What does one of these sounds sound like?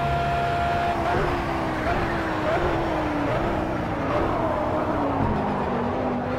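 A racing car engine drops in pitch as the car brakes hard, with the engine popping and crackling.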